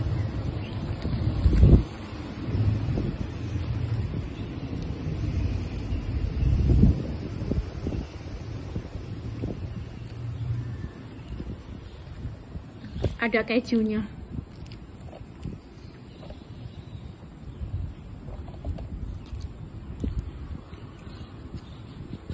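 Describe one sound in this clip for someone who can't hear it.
A woman chews food with her mouth close to a microphone.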